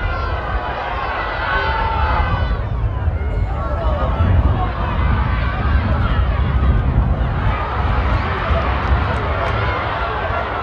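A large crowd of spectators murmurs and shouts outdoors in a stadium.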